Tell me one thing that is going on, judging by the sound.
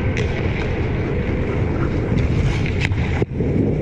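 Skate blades scrape across the ice in a large echoing arena.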